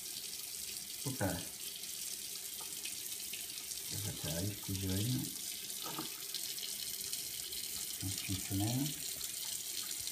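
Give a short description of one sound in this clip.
A man speaks briefly and calmly close by.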